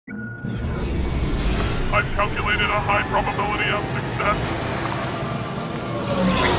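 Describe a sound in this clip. A spacecraft engine roars with a low, steady rumble.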